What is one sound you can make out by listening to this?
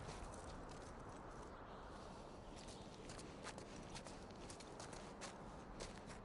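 Footsteps crunch softly on snowy stone.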